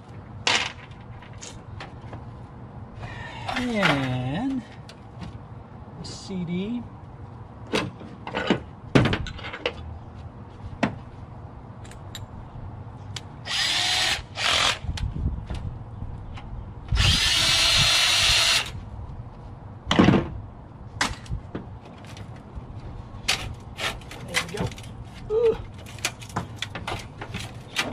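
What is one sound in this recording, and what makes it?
Metal parts clank and rattle.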